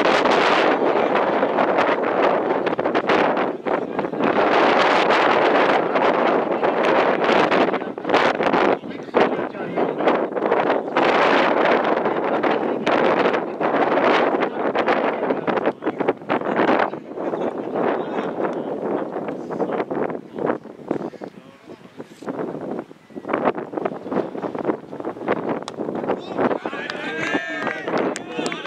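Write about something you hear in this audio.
Wind blows hard outdoors, gusting across the microphone.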